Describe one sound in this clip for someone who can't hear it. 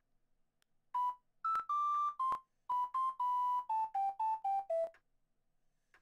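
A video game plays quick beeping chatter sounds.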